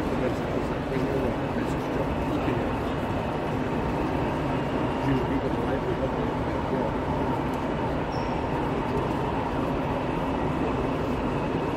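A model locomotive hums and clicks along the rails.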